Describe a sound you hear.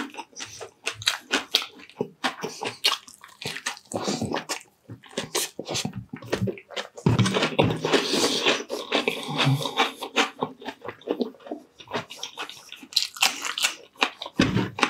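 A man chews crunchy fried food loudly and wetly close to a microphone.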